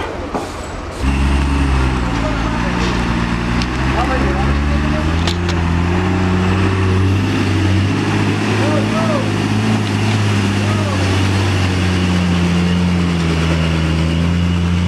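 A heavy truck engine rumbles and revs loudly.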